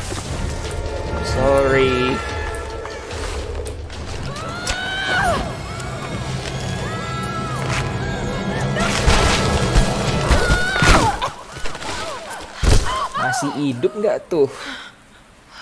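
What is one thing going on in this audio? A young woman cries out and gasps with strain.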